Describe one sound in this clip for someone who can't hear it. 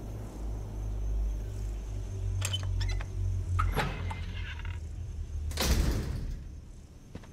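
A heavy iron gate creaks slowly open.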